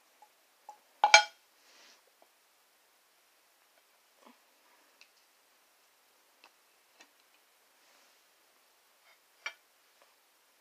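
A plastic bottle is handled and knocks lightly.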